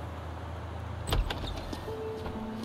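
A heavy door swings open.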